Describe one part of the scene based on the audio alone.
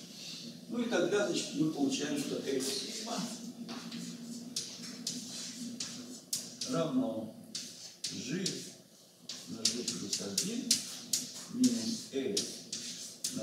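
An older man talks calmly in an echoing room.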